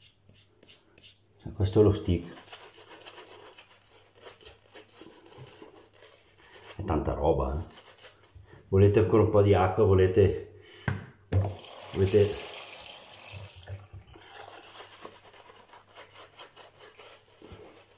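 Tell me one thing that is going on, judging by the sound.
A razor scrapes across stubble.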